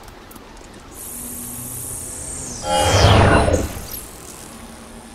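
A crackling energy burst whooshes and rushes upward.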